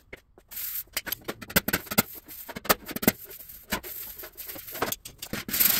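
A thin metal panel thumps and rattles as it is handled.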